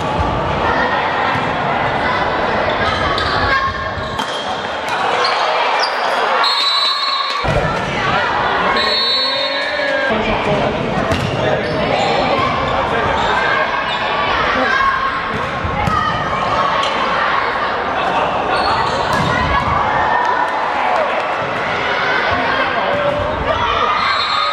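A crowd of girls cheers and shouts in a large echoing hall.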